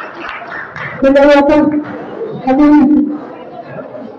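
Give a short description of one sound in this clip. A woman sings loudly through a microphone in long held notes.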